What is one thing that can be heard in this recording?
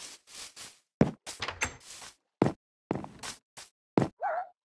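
Blocks of dirt crumble as they are dug.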